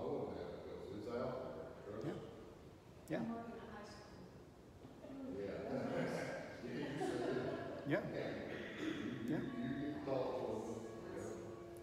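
An older man speaks calmly and slowly in a room with a slight echo.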